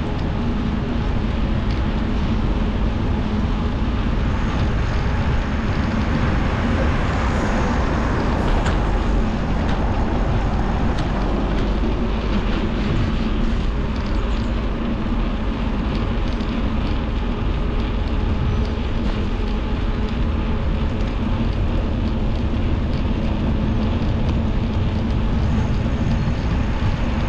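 Tyres roll and hum on smooth pavement.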